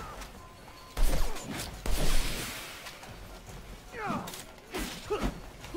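A crackling electric staff strikes and whooshes in a melee fight.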